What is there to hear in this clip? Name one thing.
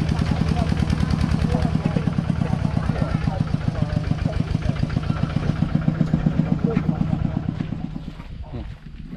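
A tractor engine chugs loudly nearby.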